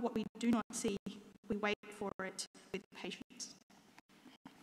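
A woman reads aloud calmly through a microphone in an echoing hall.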